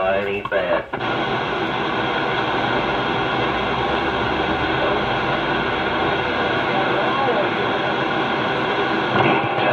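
A radio hisses with loud, steady static.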